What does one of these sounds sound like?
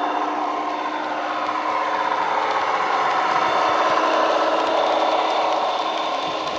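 Model train wheels clatter over rail joints.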